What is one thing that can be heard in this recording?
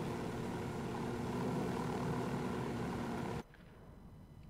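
A helicopter's rotor thrums steadily, then cuts off.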